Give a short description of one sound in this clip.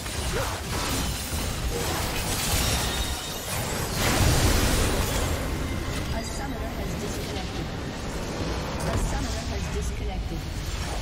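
Magic blasts and clashing attacks crackle and boom in a chaotic battle.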